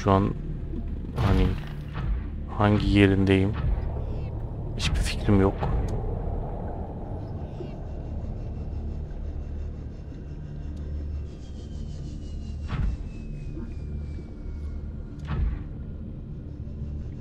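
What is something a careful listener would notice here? A small submarine's engine hums low and steady underwater.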